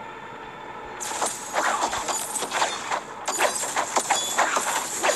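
Game characters clash in a fight with rapid hits and sound effects.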